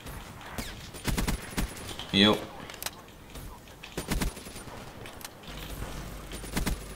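A gun fires in short rapid bursts.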